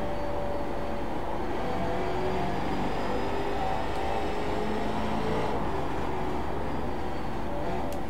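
Other racing cars' engines drone nearby.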